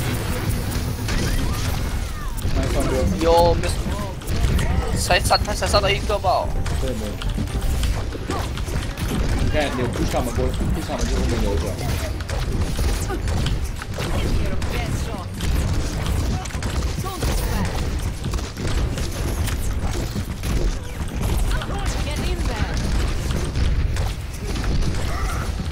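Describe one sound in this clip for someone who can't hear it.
Energy weapons fire in rapid bursts with crackling zaps.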